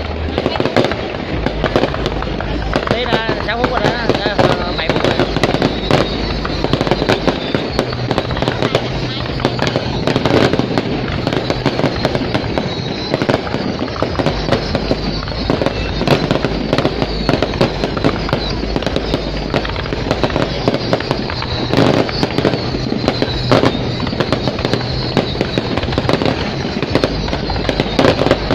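Firework shells bang in quick bursts.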